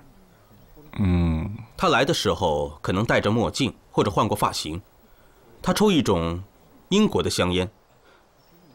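A man speaks calmly and earnestly, close by.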